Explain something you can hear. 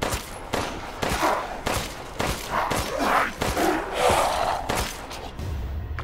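Gunshots bang out in quick succession.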